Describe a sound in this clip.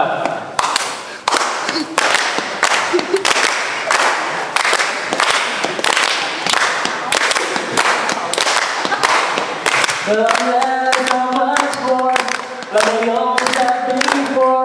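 A crowd claps in rhythm close by.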